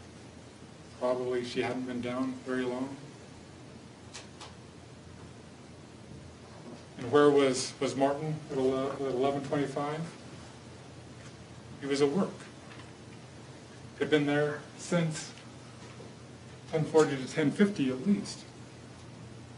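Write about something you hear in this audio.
A man speaks calmly and clearly, pausing often.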